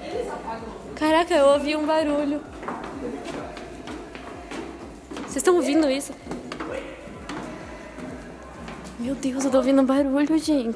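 A young woman speaks loudly and excitedly close by.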